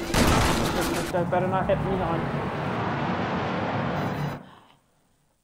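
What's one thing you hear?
A jet plane roars past.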